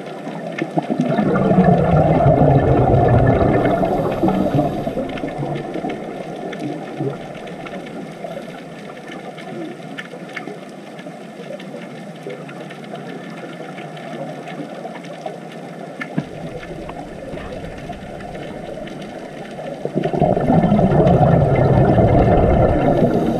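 Scuba divers breathe out bubbles that gurgle and rumble underwater.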